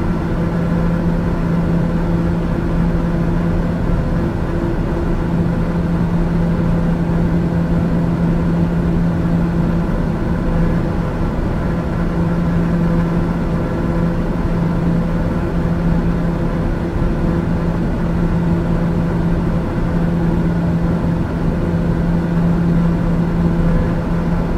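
An aircraft engine drones steadily with a low hum.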